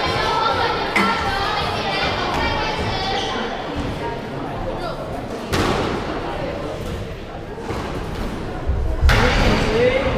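A squash ball smacks sharply against the court walls, echoing.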